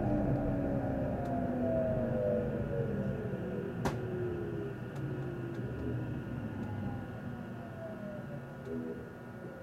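A train's motors whine with a slowly falling pitch.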